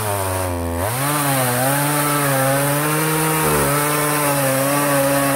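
A chainsaw engine buzzes loudly, revving up and then holding a steady high whine.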